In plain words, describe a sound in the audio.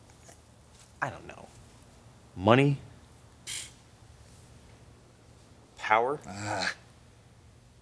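A younger man speaks briefly and sharply.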